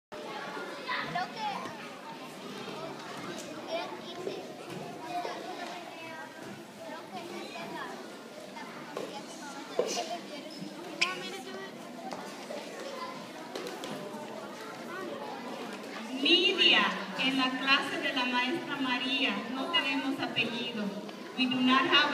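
Many children chatter in a large echoing hall.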